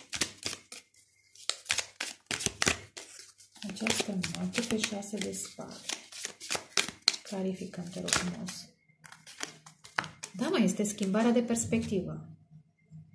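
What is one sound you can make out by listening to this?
Playing cards slap and riffle as a deck is shuffled by hand.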